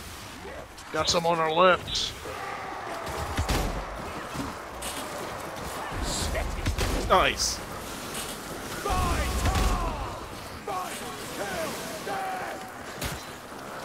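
Monsters growl and snarl.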